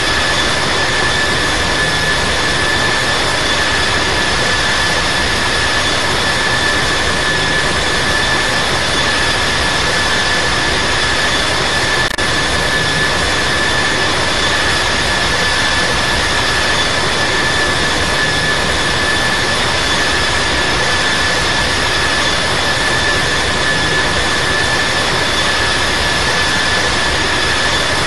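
A jet engine roars steadily with a high whine.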